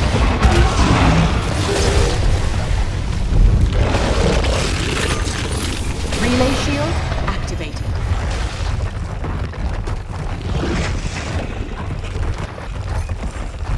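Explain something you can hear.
Heavy footsteps of a large creature thud steadily.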